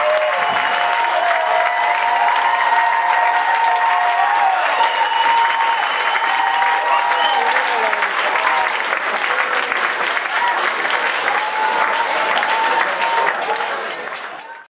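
A large crowd applauds and cheers in a big echoing hall.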